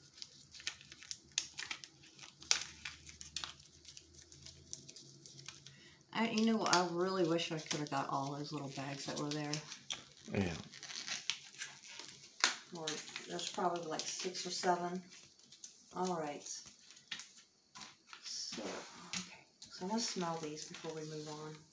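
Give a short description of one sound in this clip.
Plastic packaging crinkles and clicks in someone's hands.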